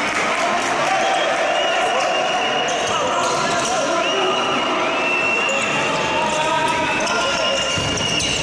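Sports shoes squeak on a polished court floor in an echoing hall.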